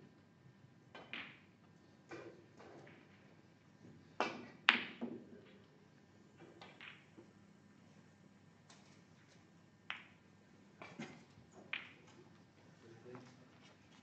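Snooker balls click against each other on a table.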